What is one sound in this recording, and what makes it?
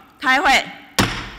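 A gavel bangs once on a desk.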